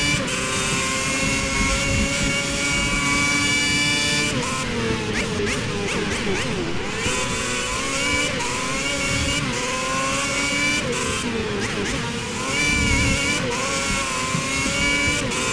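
A racing car engine screams at high revs, dropping in pitch when braking and rising again as it speeds up.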